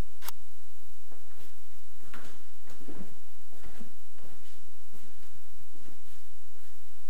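Footsteps thud softly on a wooden floor nearby.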